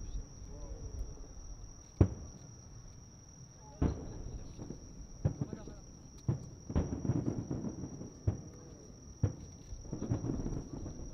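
Fireworks crackle and sizzle after bursting.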